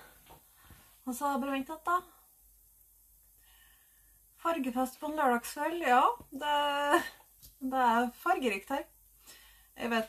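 A young woman speaks close by, in a calm, chatty way.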